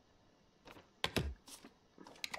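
A rubber stamp thumps down onto paper.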